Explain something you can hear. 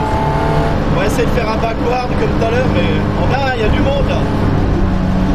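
Tyres squeal on the track as the car slides through corners.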